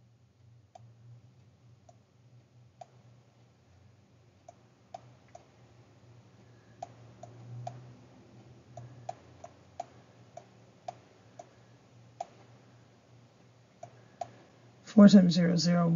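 A stylus taps and clicks on a tablet.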